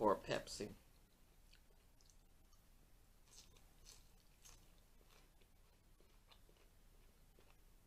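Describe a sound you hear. A woman crunches salad while chewing close to a microphone.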